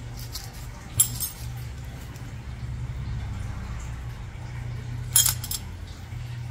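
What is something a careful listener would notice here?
Metal nail nippers snip with sharp clicks.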